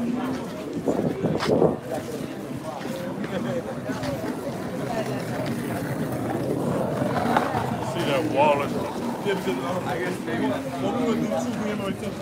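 Several men talk with animation close by, outdoors.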